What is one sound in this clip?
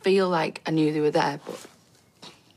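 A young woman speaks quietly and sadly, close by.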